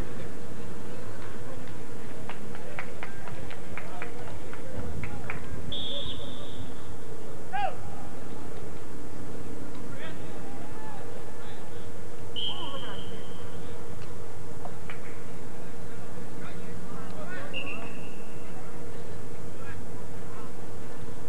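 Spectators call out and cheer from the sideline.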